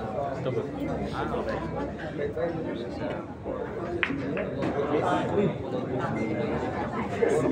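A crowd of people chatters nearby in a busy room.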